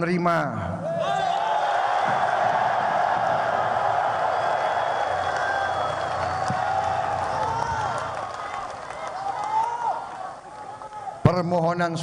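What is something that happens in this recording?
A large crowd cheers and chants.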